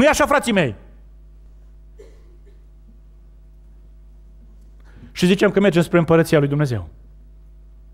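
A man speaks with feeling through a microphone in a large hall.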